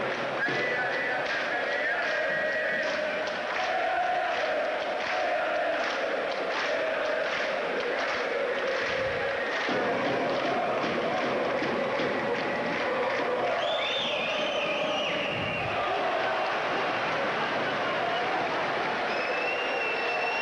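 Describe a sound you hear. A large crowd chants and cheers loudly in an echoing hall.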